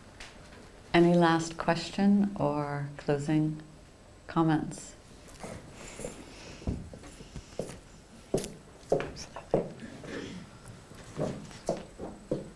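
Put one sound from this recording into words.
A woman speaks calmly into a microphone in an echoing room.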